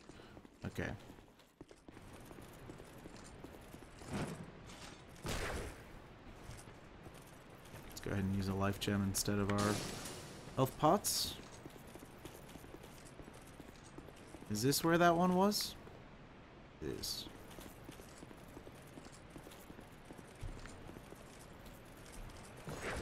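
Heavy armoured footsteps run over stone.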